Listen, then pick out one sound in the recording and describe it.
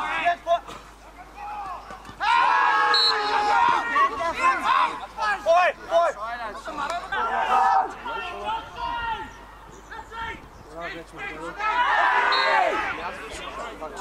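Men shout to each other loudly outdoors on an open field.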